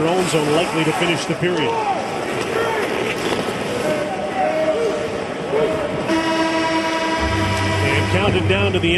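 Ice skates scrape and hiss across the ice.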